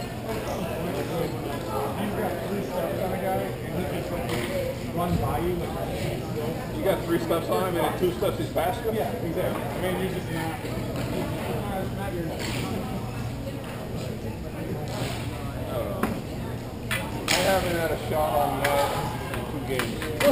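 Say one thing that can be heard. Men shout and call out across a large echoing hall.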